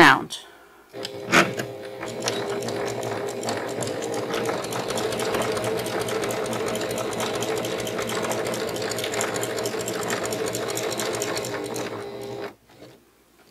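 A sewing machine runs steadily, stitching fast.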